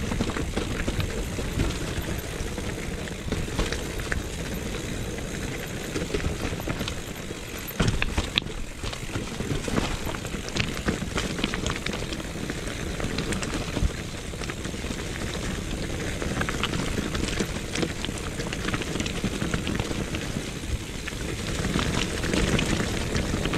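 A bicycle frame clatters and knocks over bumps.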